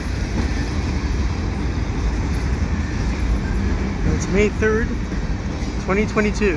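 A freight train rumbles past steadily close by.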